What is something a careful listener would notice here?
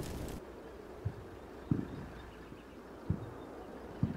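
Guns fire in short, sharp bursts in the distance.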